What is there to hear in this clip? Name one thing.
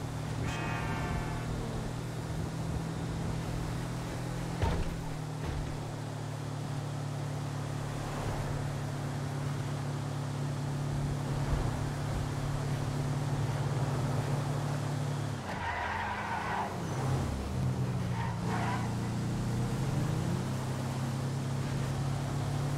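A heavy truck engine hums steadily as it drives along a highway.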